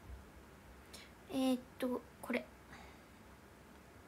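A young woman speaks briefly and softly, close by.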